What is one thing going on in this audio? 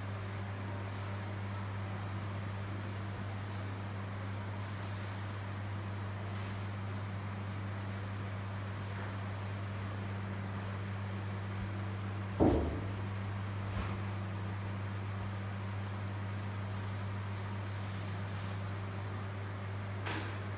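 An electric machine hums steadily.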